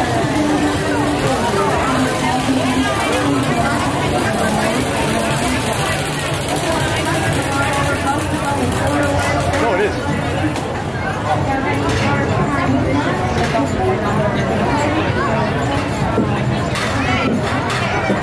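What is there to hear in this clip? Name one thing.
A dense crowd of men and women chatters all around, outdoors.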